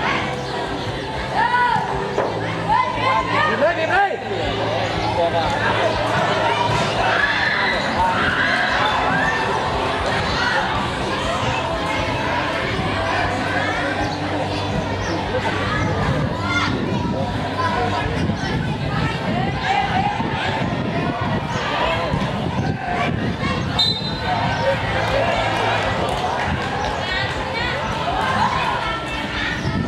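Children shout and call out during a game outdoors.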